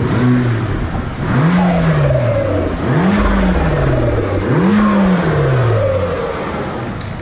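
A car engine revs up and down loudly in bursts.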